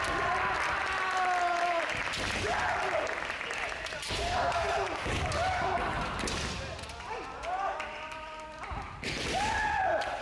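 Kendo fencers shout long, piercing cries that echo in a large hall.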